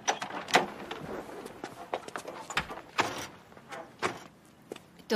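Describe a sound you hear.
Clattering knocks against a car door.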